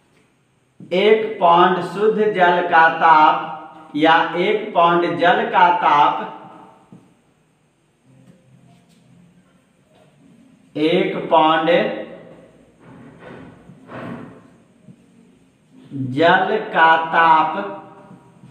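A man speaks as he explains, close by.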